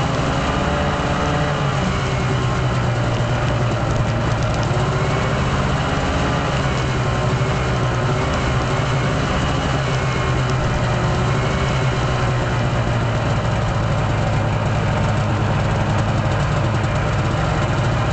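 A small engine drones steadily close by.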